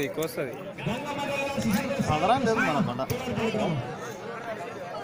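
Men nearby talk.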